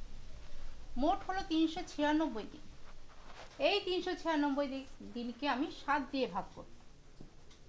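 A woman speaks calmly into a clip-on microphone, close by.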